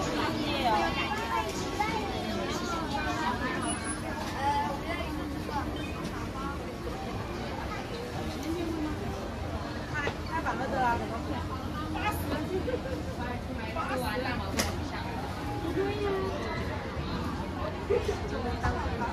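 A busy crowd chatters all around outdoors.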